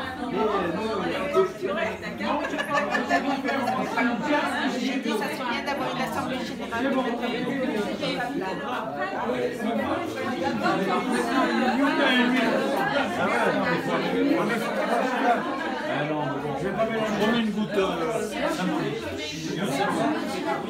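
A crowd of elderly men and women chatter and talk over one another indoors.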